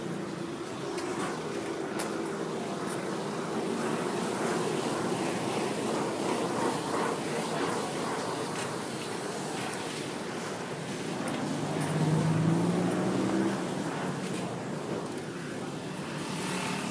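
Road traffic rumbles past steadily close by.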